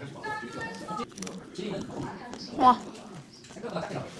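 Crispy pastry crunches as a woman bites and chews.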